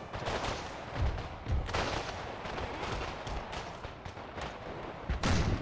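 Cannons boom in the distance.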